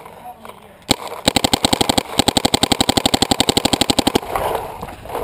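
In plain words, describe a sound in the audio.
Paintball guns fire in rapid bursts outdoors.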